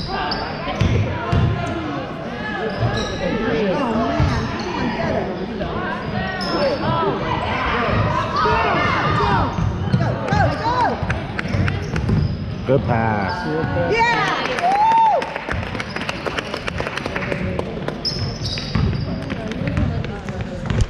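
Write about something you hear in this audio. Spectators and players shout and call out in a large echoing gym.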